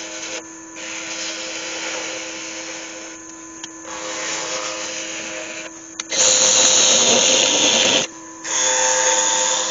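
A lathe hums steadily as it spins.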